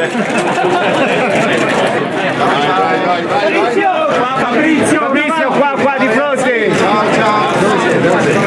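A crowd of men and women chatters and calls out nearby.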